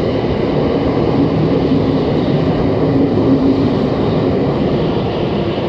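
A subway train rumbles loudly past at speed.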